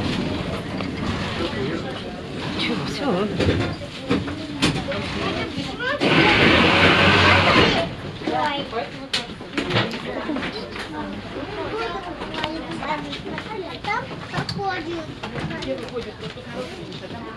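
People chatter nearby inside a tram.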